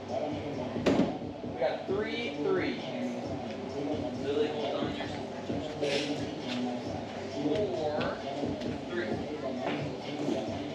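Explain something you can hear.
An axe thuds into a wooden target.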